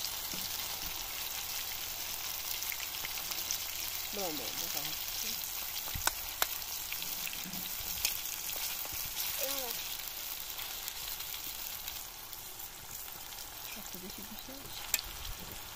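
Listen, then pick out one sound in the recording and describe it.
A metal spoon scrapes and taps against a pan.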